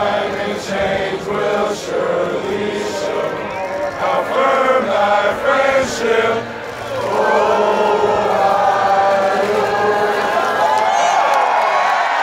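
A large group of young men sings loudly together outdoors.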